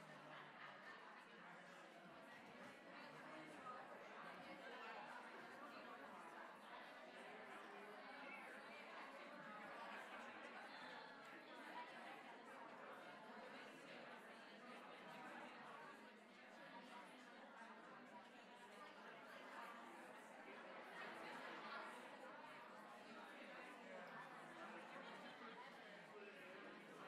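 A woman speaks into a microphone in a large echoing hall.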